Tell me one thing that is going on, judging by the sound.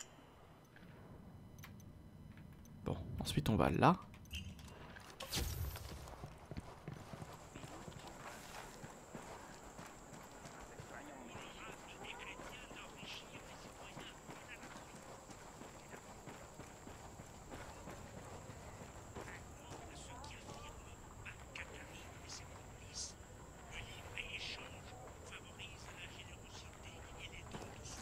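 A young man talks calmly and close into a microphone.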